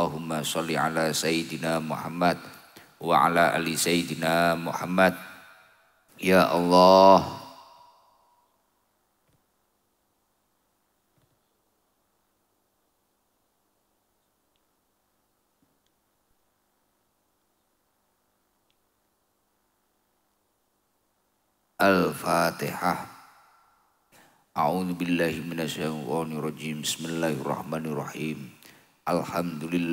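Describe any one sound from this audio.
A young man chants melodically into a headset microphone, heard through loudspeakers.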